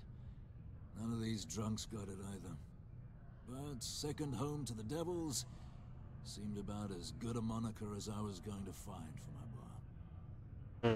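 A middle-aged man speaks calmly in a low voice, up close.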